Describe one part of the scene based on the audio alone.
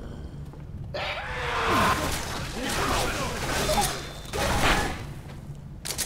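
A snarling creature shrieks and pounces on the player.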